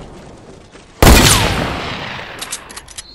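A rifle fires a single loud shot that rings out and slowly fades.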